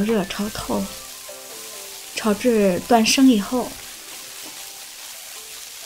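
A spatula stirs noodles in a nonstick wok.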